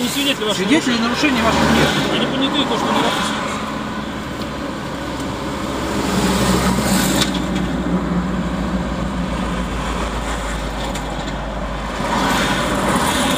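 A car engine idles steadily.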